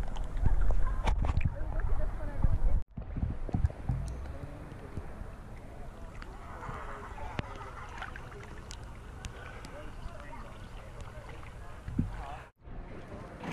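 Water splashes and sloshes against the microphone at the surface.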